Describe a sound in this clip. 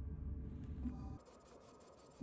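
A spacecraft engine hums low and steadily, then cuts off.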